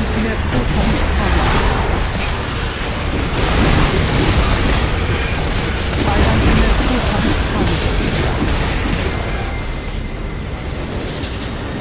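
Game spells crackle and blast in a busy fight.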